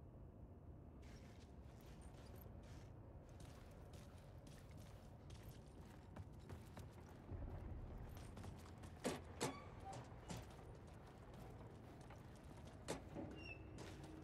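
Footsteps tread slowly along a hard floor in an echoing tunnel.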